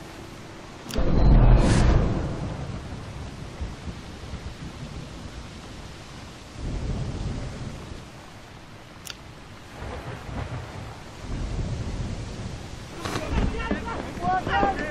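Rain falls steadily on the sea.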